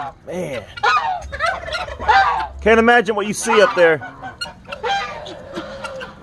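Geese honk loudly close by.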